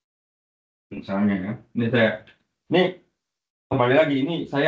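A man speaks in short bursts through an online call.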